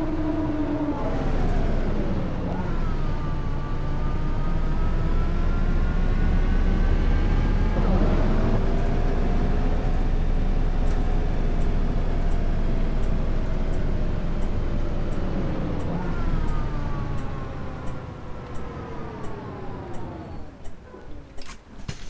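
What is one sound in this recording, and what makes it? A bus engine whines and revs up through its gears, then winds down as the bus slows to a stop.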